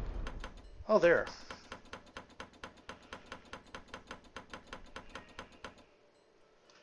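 Letter wheels of a lock click rapidly as they turn.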